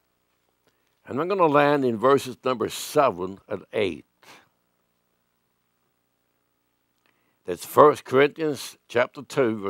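An elderly man reads aloud calmly through a microphone.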